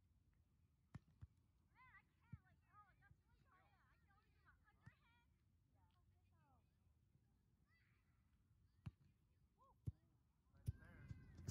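A volleyball is hit with sharp slaps outdoors.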